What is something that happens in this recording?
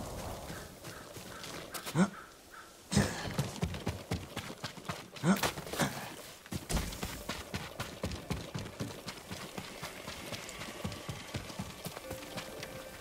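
Footsteps run quickly over grass, wooden planks and mud.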